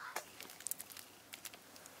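Fingers peel a crisp shrimp shell.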